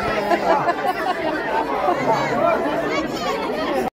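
A man speaks loudly to the crowd.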